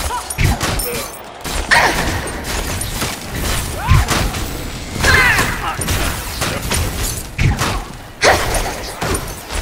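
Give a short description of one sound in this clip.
Weapons clash with sharp hits.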